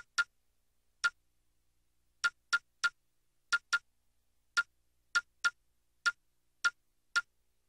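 Short menu clicks sound each time the selection moves.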